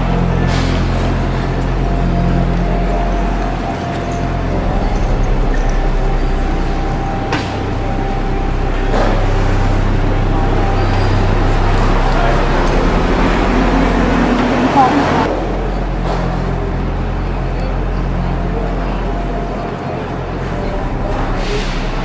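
Footsteps patter steadily on paving.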